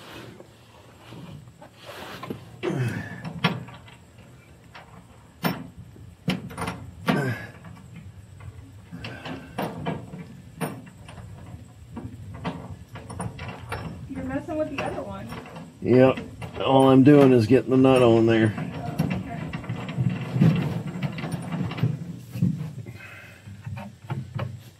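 Metal tools clink and knock under a vehicle.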